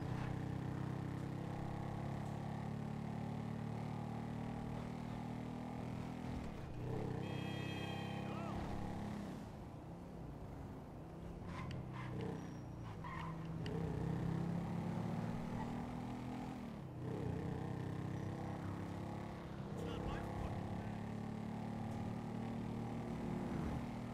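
A small motorbike engine hums steadily and revs up and down.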